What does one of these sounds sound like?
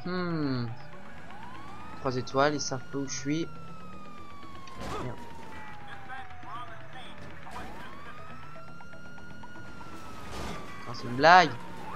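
A police siren wails, sliding up and down in pitch.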